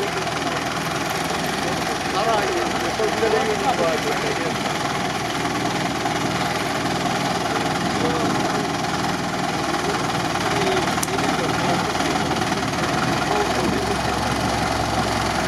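A truck engine rumbles and strains at low speed.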